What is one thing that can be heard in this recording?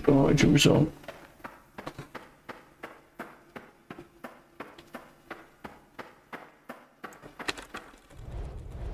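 Footsteps tread on a dirt floor.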